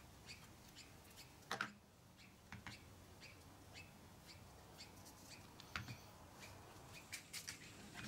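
A wooden block knocks down onto a hard surface.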